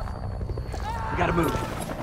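A young woman cries out in distress close by.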